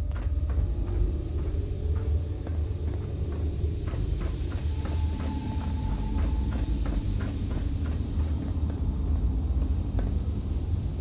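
Footsteps scuff across a gritty floor.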